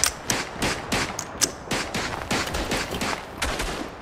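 A rifle bolt clicks during reloading.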